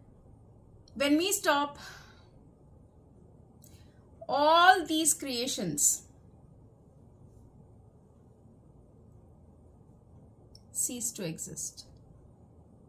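A middle-aged woman speaks calmly and close by, in short phrases.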